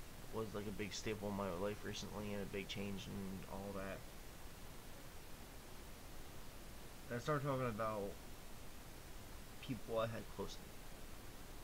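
A young man speaks calmly and close into a microphone, in short bursts with pauses.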